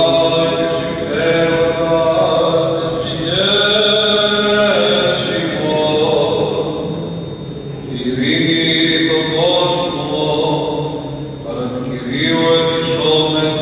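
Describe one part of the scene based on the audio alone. A small group of adult singers chants slowly together in a large echoing hall.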